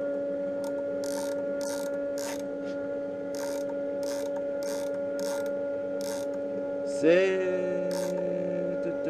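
A micrometer ratchet clicks in short bursts.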